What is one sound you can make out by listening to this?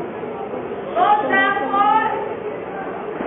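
A man on stage cries out loudly in an echoing hall.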